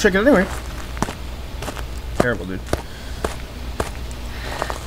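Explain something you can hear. Slow footsteps tread on a hard floor.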